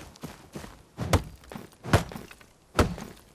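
An axe chops into a tree trunk with loud thuds.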